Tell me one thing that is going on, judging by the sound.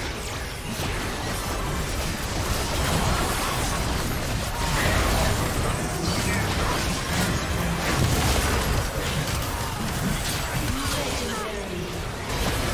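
Magic spells and attacks crackle, whoosh and boom in a busy fight.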